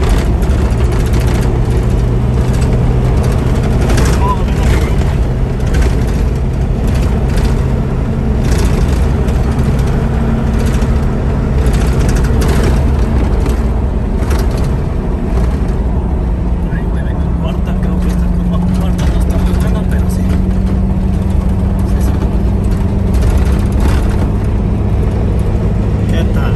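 A vehicle engine hums steadily as it drives along a road.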